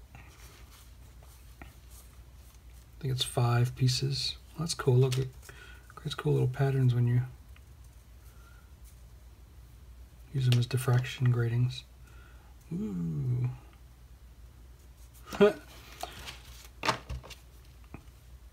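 Thin plastic sheets rustle and crinkle as they are handled.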